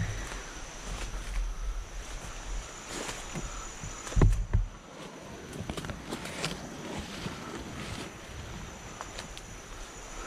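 Leaves and branches rustle as someone moves through brush.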